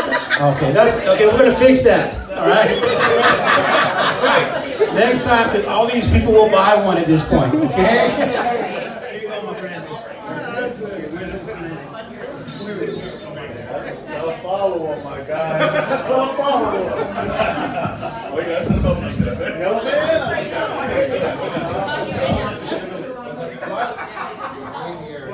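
A man sings loudly into a microphone.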